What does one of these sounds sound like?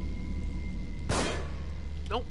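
A gunshot cracks loudly.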